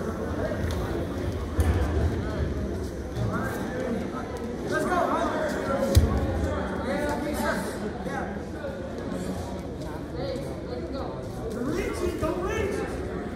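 A crowd of spectators murmurs and calls out in a large echoing gym.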